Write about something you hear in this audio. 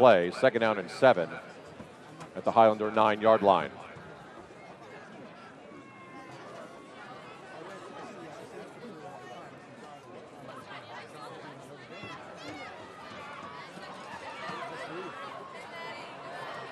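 A crowd of spectators chatters and cheers in the distance outdoors.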